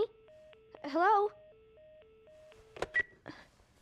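An alarm clock beeps repeatedly.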